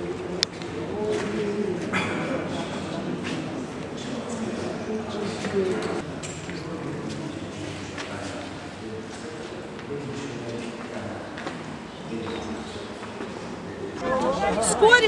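Many people murmur and talk quietly in a large echoing hall.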